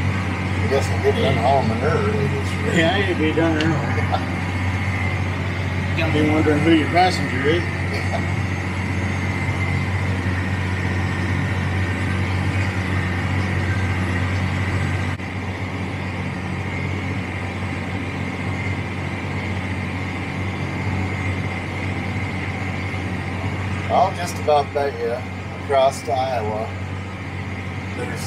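A tractor engine hums steadily from inside a cab.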